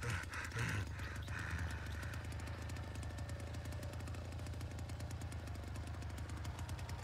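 A chainsaw engine idles with a steady, low rumble.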